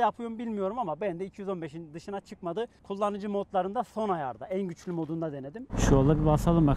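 A young man talks with animation into a clip-on microphone outdoors.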